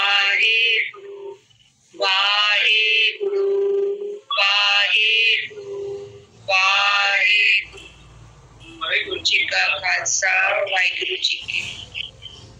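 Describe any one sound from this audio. A woman sings through an online call.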